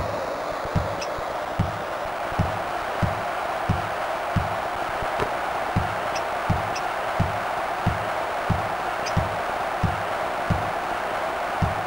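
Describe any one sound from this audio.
A basketball bounces in a steady rhythm on a hard floor.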